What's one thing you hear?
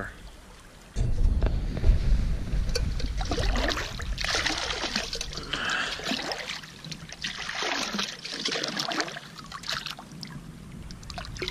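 A metal pot is dipped in water and gurgles as it fills.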